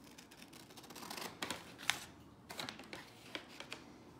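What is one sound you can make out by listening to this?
Scissors snip through cardboard.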